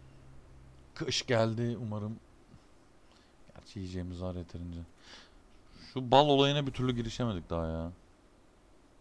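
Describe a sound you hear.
A man talks calmly into a microphone, close by.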